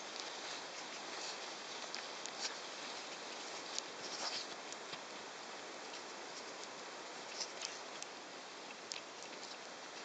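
Horse hooves thud softly on grass.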